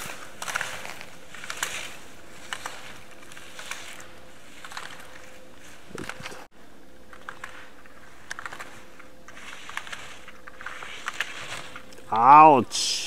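Skis scrape and hiss across hard snow in quick, rhythmic turns.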